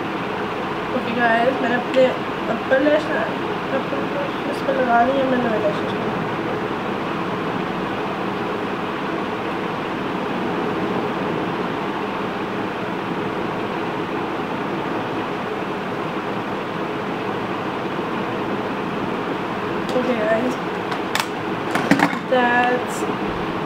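A young woman talks calmly and close by.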